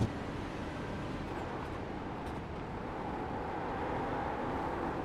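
Tyres squeal on the track.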